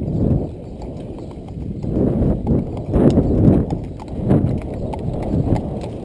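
Horses' hooves clop on a paved lane.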